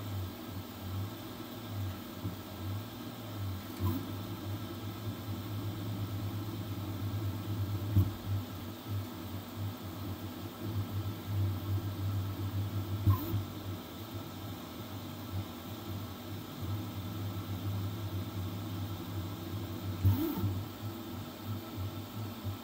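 A printer's motors hum and whir steadily as the print head moves.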